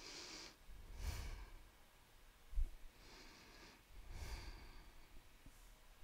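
A woman speaks calmly into a headset microphone.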